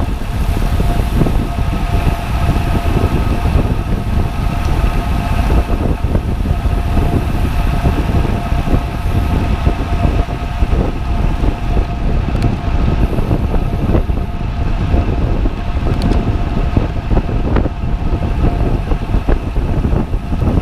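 Wind buffets a microphone while riding outdoors.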